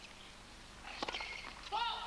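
A tennis racket strikes a ball on a serve.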